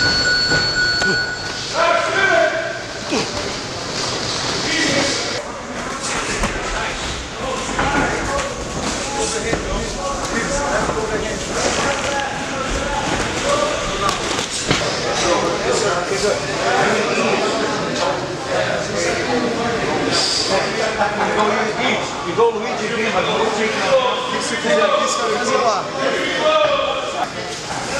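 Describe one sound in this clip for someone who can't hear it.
Several men talk and call out.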